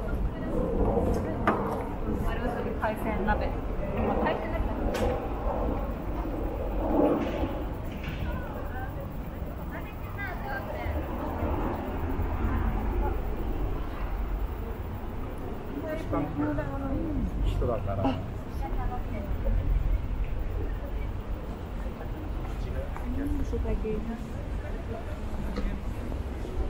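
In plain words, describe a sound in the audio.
A crowd of people murmurs and chats nearby, outdoors.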